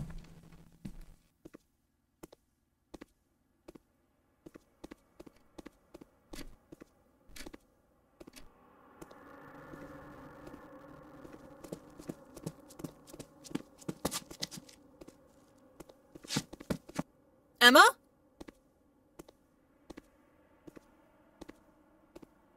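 Footsteps thud slowly and steadily across a wooden floor.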